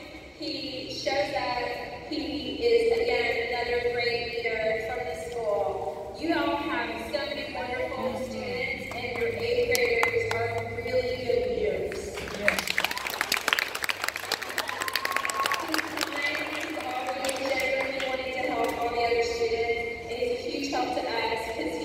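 A woman sings into a microphone over a loudspeaker.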